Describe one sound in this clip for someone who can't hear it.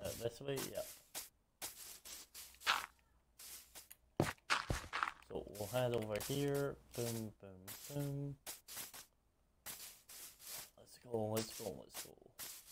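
Footsteps tread on soft grass.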